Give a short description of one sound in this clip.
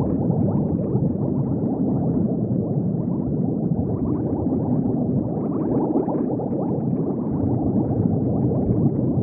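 Bubbles gurgle and bubble steadily underwater.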